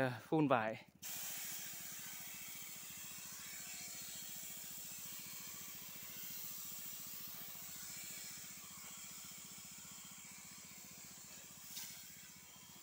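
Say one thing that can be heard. A pressure sprayer hisses steadily as it sprays a fine mist.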